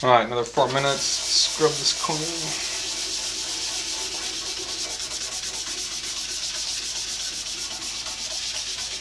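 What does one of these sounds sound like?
A band saw motor runs with a steady whirring hum.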